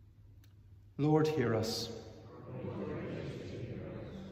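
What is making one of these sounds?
A middle-aged man speaks calmly close by in a large echoing room.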